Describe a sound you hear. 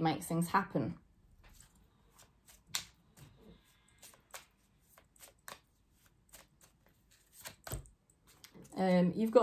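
Cards shuffle softly in a woman's hands.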